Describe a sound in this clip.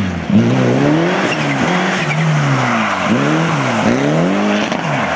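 Tyres crunch and spray over loose gravel.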